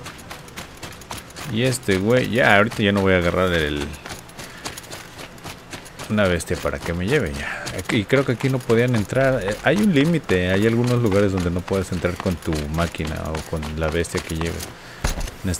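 Footsteps run quickly over ground and stone.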